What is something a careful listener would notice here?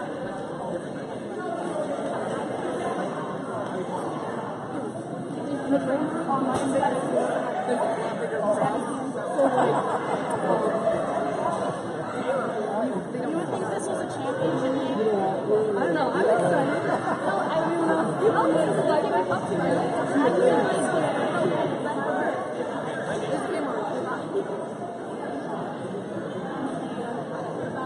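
A crowd of spectators chatters throughout a large echoing gym.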